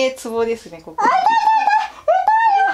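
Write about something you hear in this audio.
A young woman cries out in pain.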